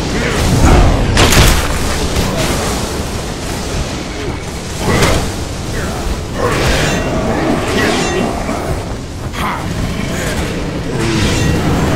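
Monsters growl and snarl.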